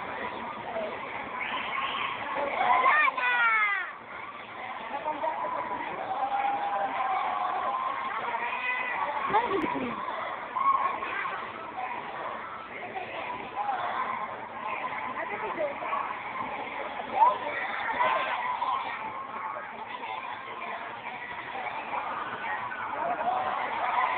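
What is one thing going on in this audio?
A crowd of young people chatters and calls out outdoors.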